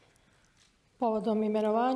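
A middle-aged woman begins speaking over a microphone in a large hall.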